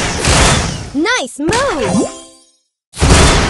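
Bright chimes ring out in a quick rising jingle.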